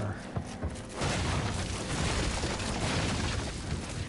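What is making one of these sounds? A wooden sliding door rattles open.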